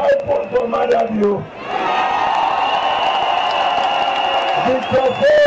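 A large outdoor crowd cheers and sings.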